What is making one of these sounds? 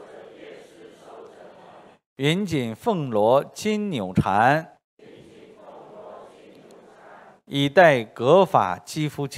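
A middle-aged man reads aloud calmly through a microphone.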